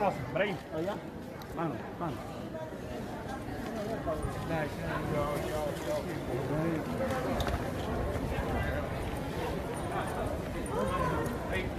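A crowd of people talk and call out close by, in a large echoing hall.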